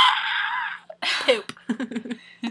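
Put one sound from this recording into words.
A young woman talks and laughs with animation close to a microphone.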